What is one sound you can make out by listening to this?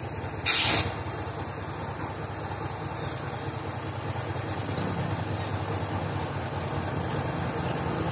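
A diesel locomotive engine rumbles low and steady in the distance as a freight train approaches.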